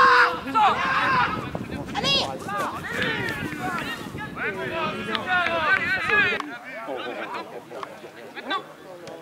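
Young men shout and call out to each other outdoors, some distance away.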